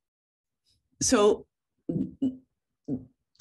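A woman speaks calmly through an online call microphone.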